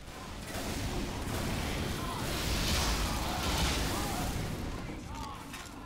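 Explosions boom and crackle close by.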